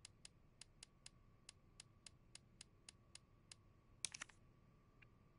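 Soft menu ticks click in quick succession as a list scrolls.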